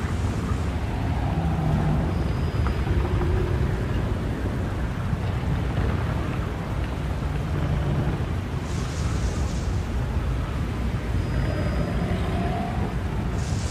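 A large fire roars and crackles steadily.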